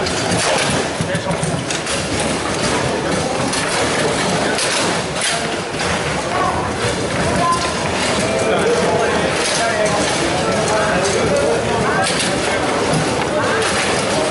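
Foosball rods rattle and the ball clacks against plastic players.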